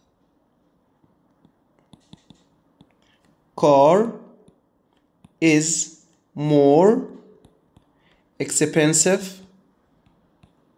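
A stylus taps and scratches lightly on a tablet.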